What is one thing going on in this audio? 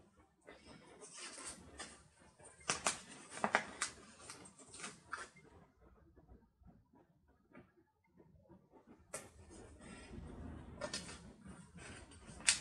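Paper rustles and crinkles as a sheet of stickers is handled.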